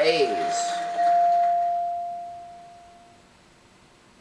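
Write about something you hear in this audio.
A bright chime rings from a television and slowly fades.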